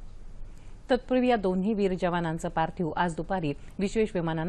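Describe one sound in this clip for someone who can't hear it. A woman reads out the news calmly into a microphone.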